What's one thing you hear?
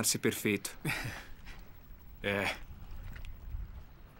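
A man laughs softly.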